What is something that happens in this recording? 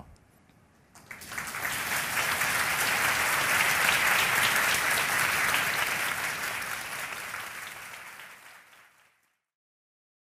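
An audience applauds loudly, then the applause fades away.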